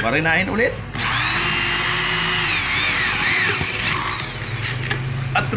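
An electric drill whirs at high speed, drilling into metal.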